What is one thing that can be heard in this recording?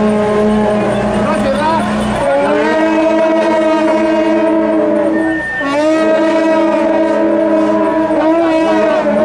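Long brass horns blare loud, held notes close by.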